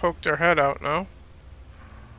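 A man speaks briefly and with animation into a close microphone.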